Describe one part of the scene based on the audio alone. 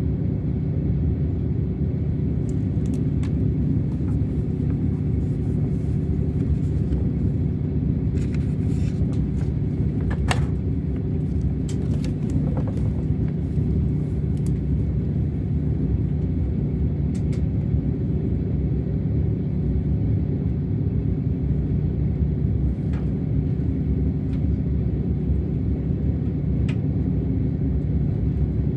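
A train rumbles along steadily with a low hum.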